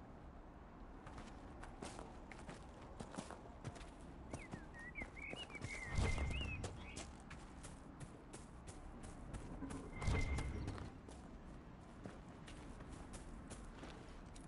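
Footsteps crunch quickly over grass and dirt.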